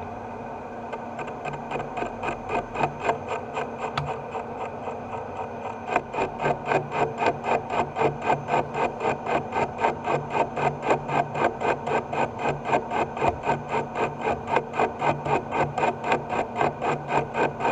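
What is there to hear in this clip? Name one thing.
A spinning metal rod rattles and knocks rhythmically in a lathe, growing louder.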